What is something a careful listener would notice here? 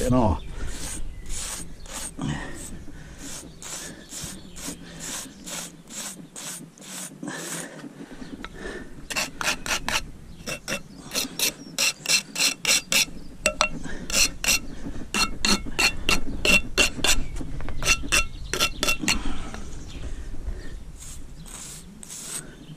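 A sponge rubs over mortar joints.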